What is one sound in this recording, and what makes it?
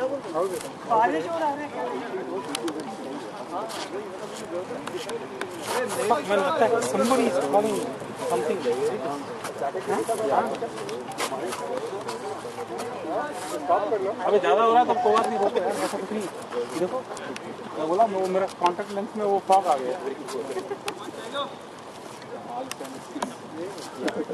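Men talk and call out to each other outdoors at a distance.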